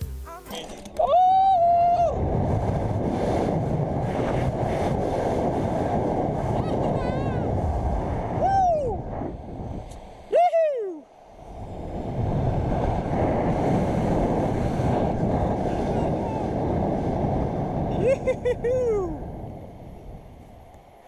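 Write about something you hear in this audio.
Wind rushes loudly past during a fall.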